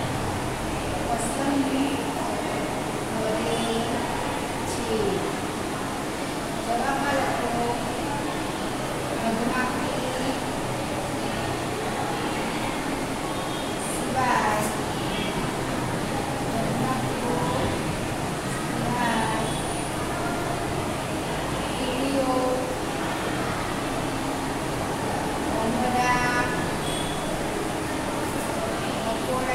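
A woman speaks calmly nearby, explaining.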